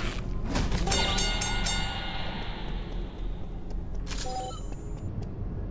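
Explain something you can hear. A bright electronic chime rings out.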